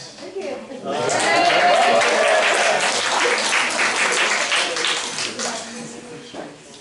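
An audience claps and cheers loudly.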